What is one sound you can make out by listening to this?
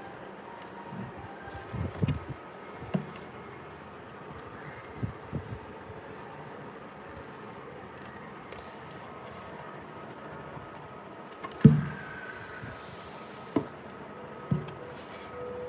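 Hard plastic speaker parts knock and clunk as they are handled and set down.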